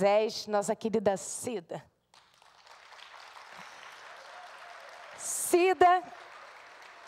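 A woman speaks with animation into a microphone in a large hall.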